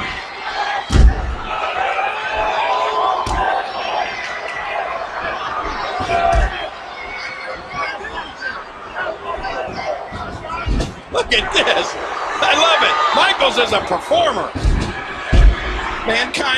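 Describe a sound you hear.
Heavy thuds of bodies slamming onto a wrestling ring mat ring out.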